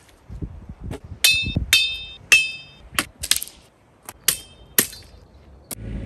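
Branches crack and clatter as a man drags them.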